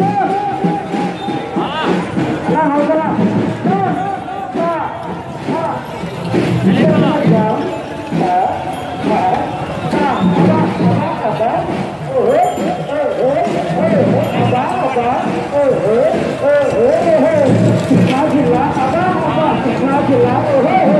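A crowd of men talks and calls out nearby, outdoors.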